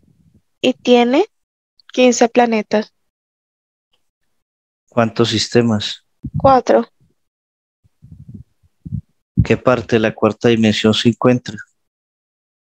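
A man speaks calmly through a headset microphone over an online call.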